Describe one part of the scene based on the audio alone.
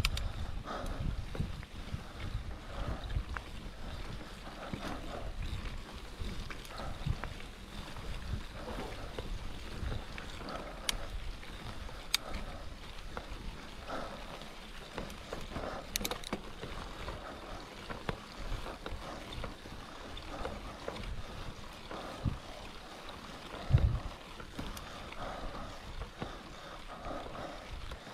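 Bicycle tyres roll and rumble over bumpy grass.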